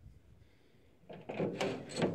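A rusty metal door handle rattles and scrapes as it is pulled.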